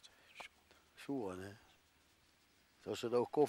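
An elderly man speaks quietly at a distance.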